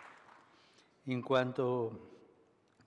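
An elderly man speaks slowly into a microphone in an echoing hall.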